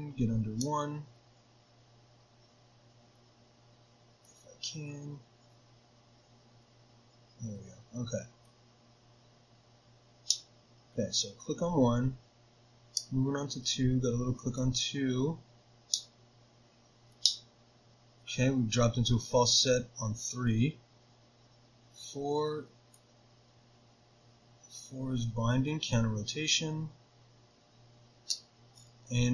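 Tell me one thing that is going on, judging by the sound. Small metal picks click and scrape inside a padlock.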